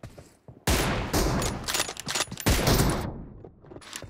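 Gunshots fire in rapid, loud bursts.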